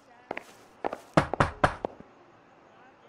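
A man knocks loudly on a wooden door.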